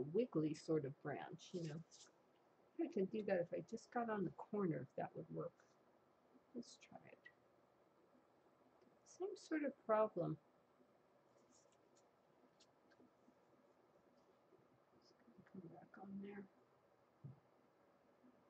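An older woman talks calmly into a microphone, in short bursts.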